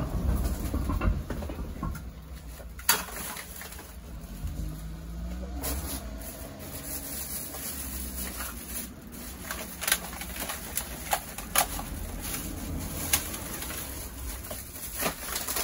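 A plastic bag rustles and crinkles as rubbish is stuffed into it.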